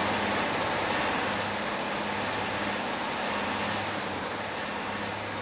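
A diesel multiple-unit train rumbles along the rails.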